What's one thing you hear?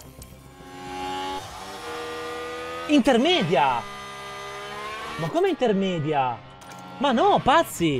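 A racing car engine whines loudly, its pitch rising and dropping sharply as gears change.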